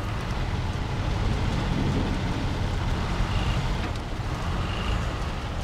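Tyres crunch through snow and mud.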